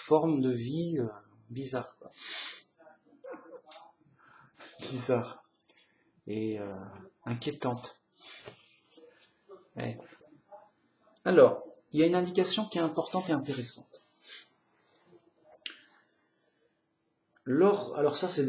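A middle-aged man talks calmly and close to a microphone, with pauses.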